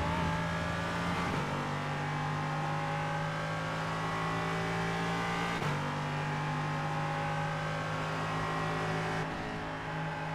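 A race car engine roars at high revs, shifting up through the gears.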